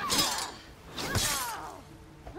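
A sword slashes through the air with a sharp swish.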